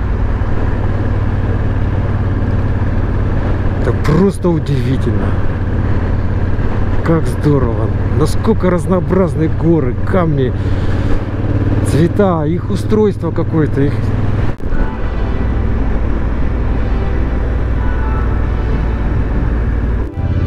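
Tyres roll and crunch over a gravel road.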